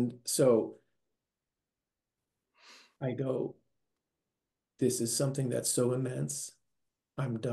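An older man speaks with animation over an online call, pausing between phrases.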